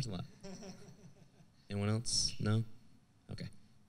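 A woman in the audience speaks up close to a microphone.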